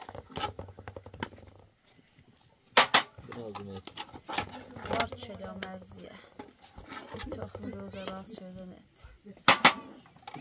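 A metal ladle clinks against plates and a pot.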